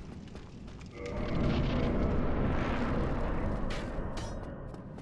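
A deep rushing whoosh swells and slowly fades.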